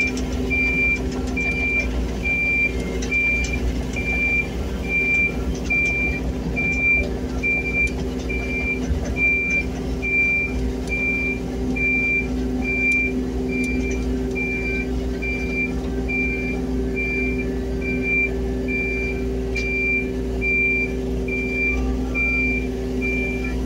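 An alarm beeps steadily and rapidly.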